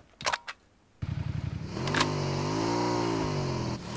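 A motorbike engine roars and revs up and down.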